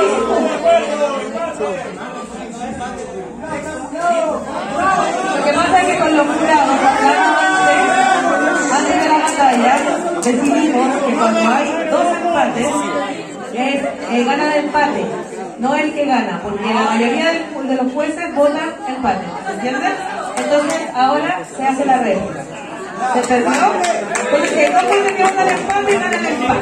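A man speaks rhythmically into a microphone, heard through loudspeakers.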